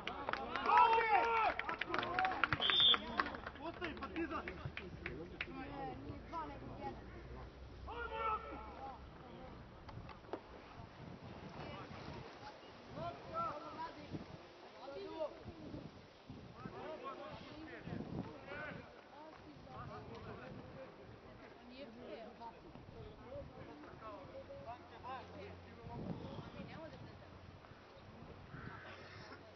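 Men shout to one another across an open field outdoors.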